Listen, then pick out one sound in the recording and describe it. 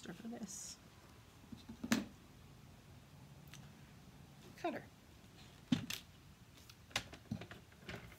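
Paper rustles as it is handled and laid down.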